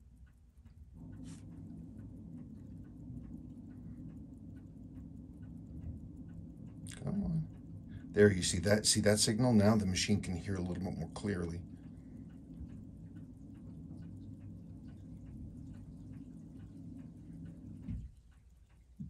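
A watch crown is wound by hand with a soft, steady ratcheting whir.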